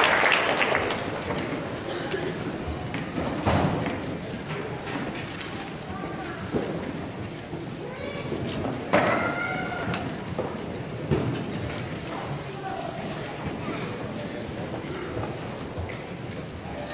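A crowd of adults chatters quietly in a large echoing hall.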